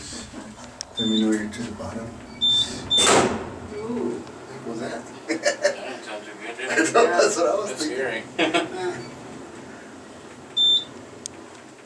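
An elevator chime dings.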